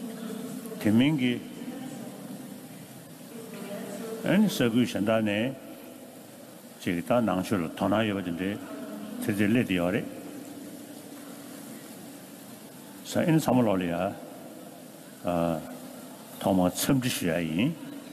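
An elderly man speaks calmly through a microphone, in bursts with pauses.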